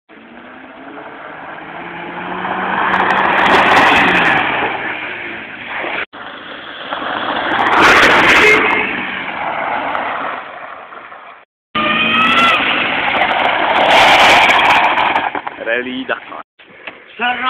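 A rally car engine roars loudly as it speeds past on gravel.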